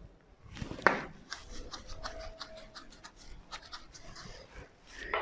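An eraser rubs across a whiteboard.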